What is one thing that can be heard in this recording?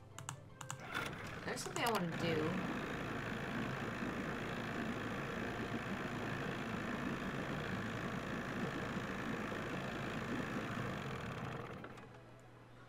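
An outboard motor starts and roars steadily.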